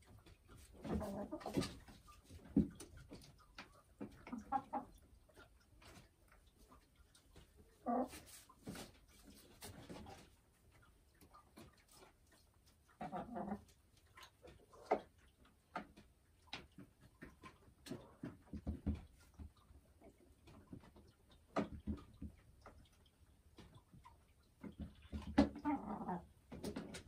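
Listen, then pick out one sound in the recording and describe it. A hen clucks softly in bursts, close by.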